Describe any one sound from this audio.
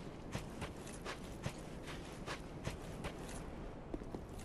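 Armored footsteps clank quickly on stone.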